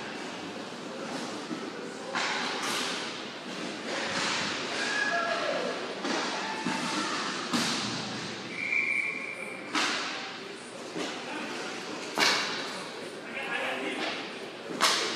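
A crowd cheers and chatters in a large echoing arena.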